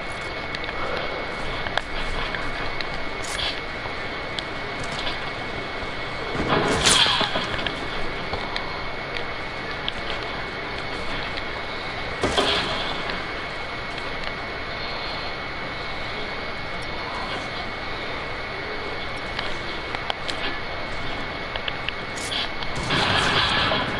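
Wooden walls snap into place with short sharp clacks.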